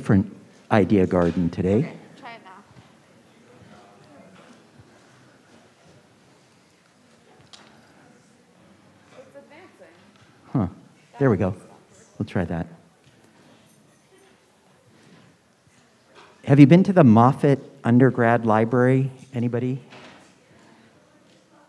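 An elderly man speaks calmly through a microphone, with long pauses.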